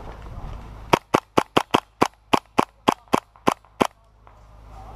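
An airsoft gun fires a rapid burst of sharp snapping shots close by.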